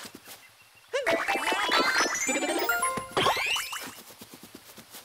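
Bright, tinkling chimes ring out in a rapid run.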